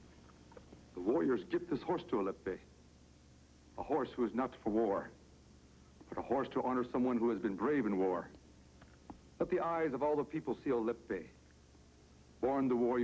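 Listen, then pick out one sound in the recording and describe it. A man speaks slowly and solemnly, close by.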